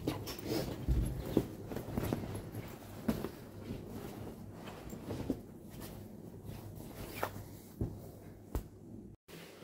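A jacket rustles as it is handled close by.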